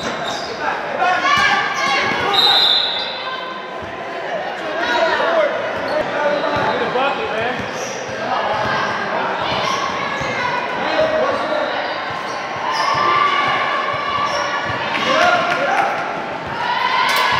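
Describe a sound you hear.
Girls and young women shout and call out in a large echoing hall.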